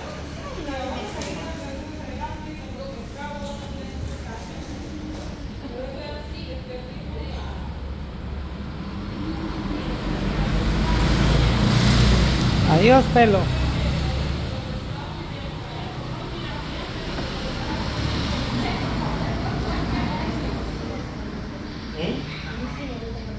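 Young women chat calmly nearby.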